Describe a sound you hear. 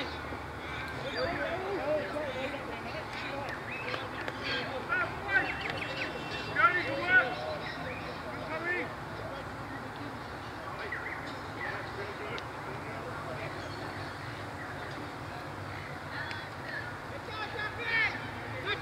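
Men shout and call out to each other at a distance outdoors.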